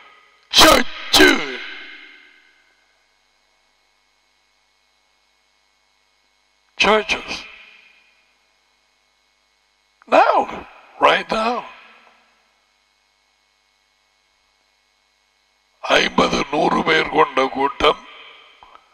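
An older man speaks with animation into a close microphone, in short bursts with long pauses.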